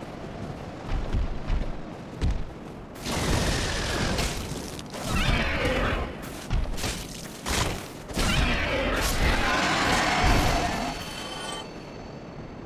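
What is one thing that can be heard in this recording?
Heavy blows thud and clash in a fight.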